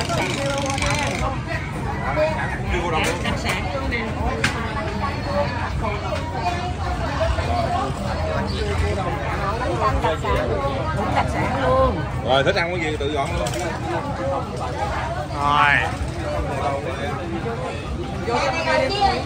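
A crowd murmurs.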